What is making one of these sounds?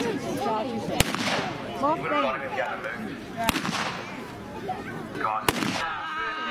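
Flintlock guns fire sharp loud shots outdoors.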